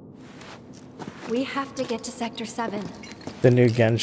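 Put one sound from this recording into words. A young woman speaks softly and urgently.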